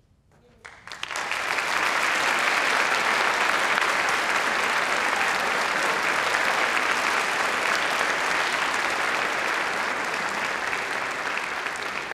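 A large band plays loudly in an echoing hall.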